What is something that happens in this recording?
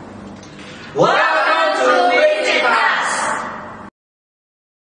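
A group of young men and women shout a greeting together.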